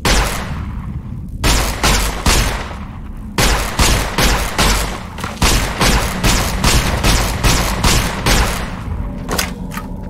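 A heavy energy gun fires repeated loud blasts.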